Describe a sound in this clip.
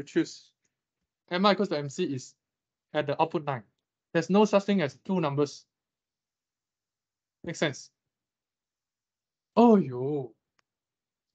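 A young man speaks calmly through a microphone in an online call, pausing between phrases.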